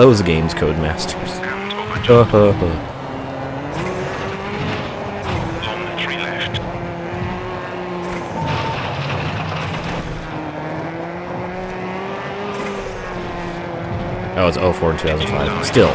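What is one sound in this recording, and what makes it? A rally car engine roars and revs steadily.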